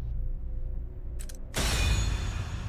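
A game menu confirm sound clicks.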